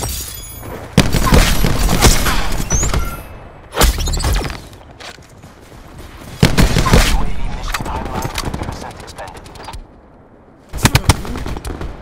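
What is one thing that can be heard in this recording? Gunfire cracks in loud, rapid bursts.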